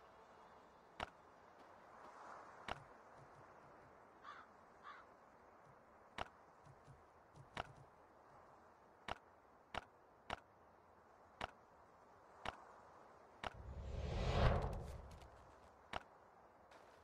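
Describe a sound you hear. Game menu buttons click sharply again and again.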